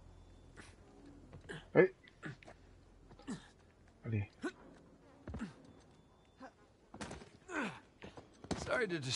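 A man jumps and lands with thuds on wooden posts.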